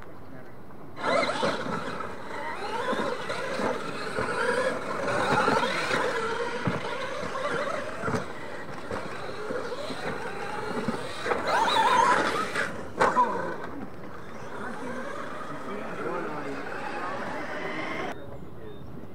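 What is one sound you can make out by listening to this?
Small electric motors of radio-controlled cars whine as the cars race over dirt.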